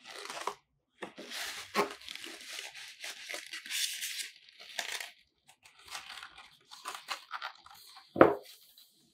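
Foam packing squeaks and scrapes as it is pulled out of a cardboard box.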